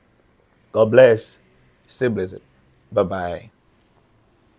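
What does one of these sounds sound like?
A man speaks calmly into a close microphone in short phrases.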